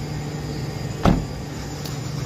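A car door slams shut with a thud.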